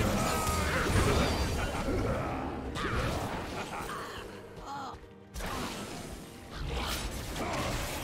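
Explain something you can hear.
Magic spell effects whoosh and crackle during a fantasy battle.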